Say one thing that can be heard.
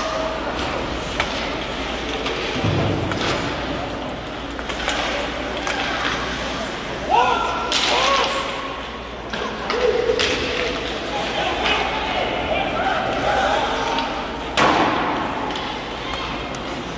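Spectators talk and call out in an echoing rink.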